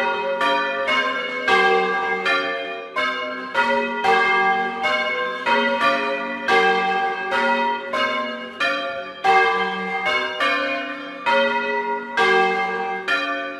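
Four swinging church bells ring in turn, close up.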